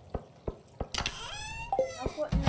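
A short chime rings as a menu opens.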